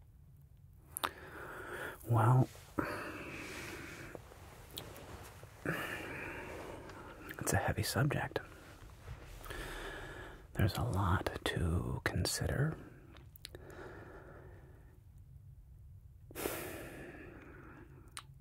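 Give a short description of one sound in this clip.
A man speaks softly and closely into a microphone.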